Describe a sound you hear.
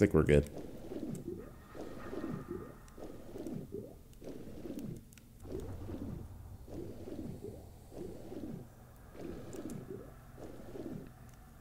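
Muffled water swishes in a steady rhythm of swimming strokes underwater.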